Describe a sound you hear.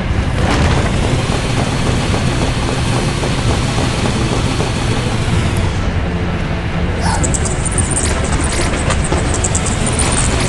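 A cartoon train rumbles and clatters steadily along its tracks.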